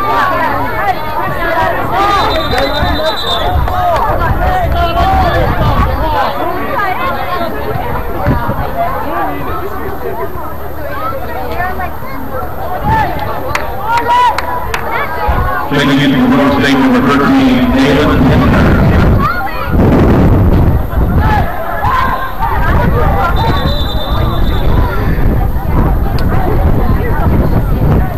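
Many voices chatter and call out across a wide outdoor field.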